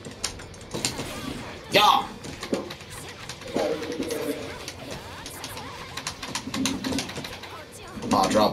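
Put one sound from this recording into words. Fighting game hits crack and smash in quick bursts.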